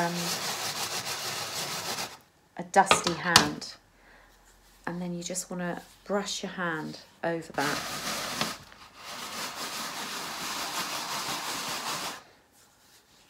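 A hand sweeps and rustles through sand in a metal tray.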